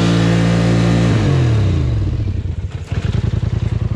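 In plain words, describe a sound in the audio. A quad bike engine revs loudly and then winds down.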